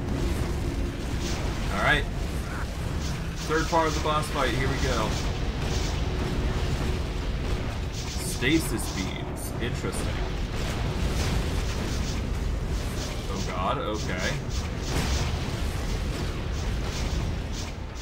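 Magic spells burst and crackle in quick bursts.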